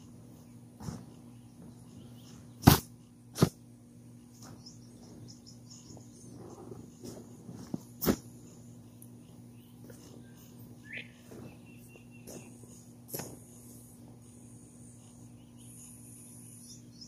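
A tarp rustles and crinkles as it is pulled across grass.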